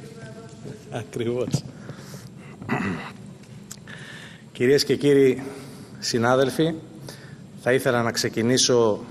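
A man speaks loudly into a microphone in a large echoing hall.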